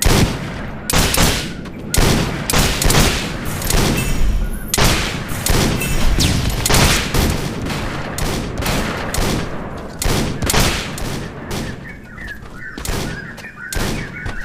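Gunshots crack again and again in quick bursts.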